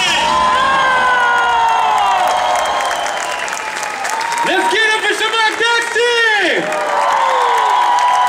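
A large crowd cheers and whistles.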